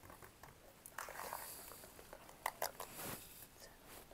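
A cardboard box is tapped and handled.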